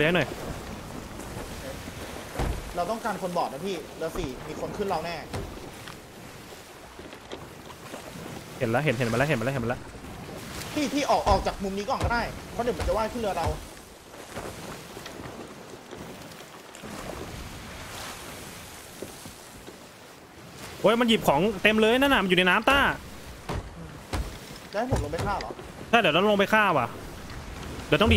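Rough sea waves surge and splash steadily.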